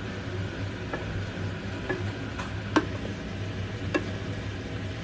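A spoon scrapes and knocks against a pan.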